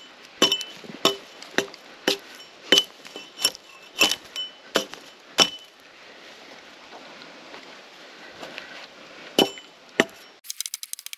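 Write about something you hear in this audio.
A hatchet chops into wood with sharp, regular knocks.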